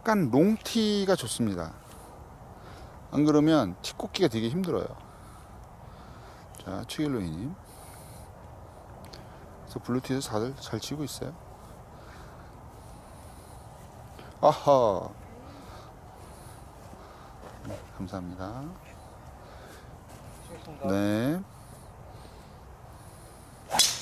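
A golf club swishes through the air.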